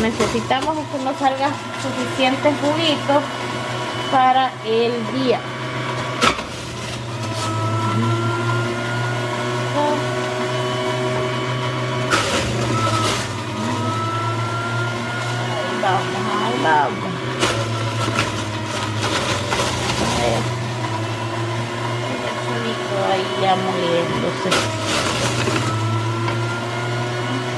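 A juicer motor hums steadily while grinding vegetables.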